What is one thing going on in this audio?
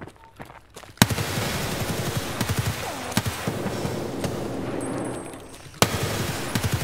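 A rifle fires loud shots that ring out in a room.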